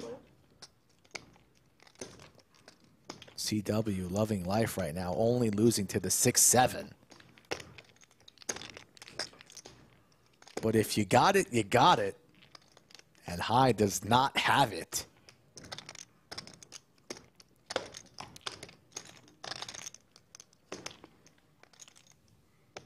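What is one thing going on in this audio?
Poker chips click together.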